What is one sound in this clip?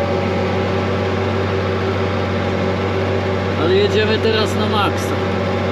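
A cultivator's tines scrape through dry soil.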